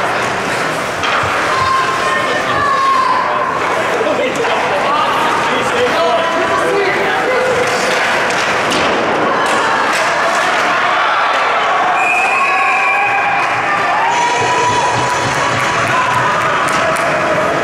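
A crowd cheers and shouts in a large echoing rink.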